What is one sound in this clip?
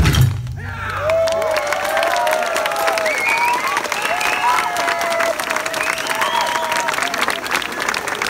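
Performers shout calls in time with the drumming.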